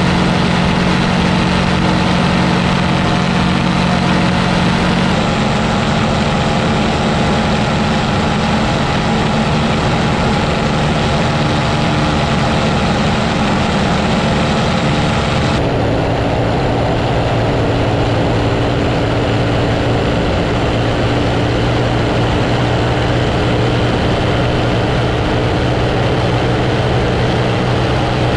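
A propeller engine drones loudly and steadily close by.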